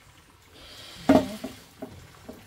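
A metal pot clanks as it is set down on the floor.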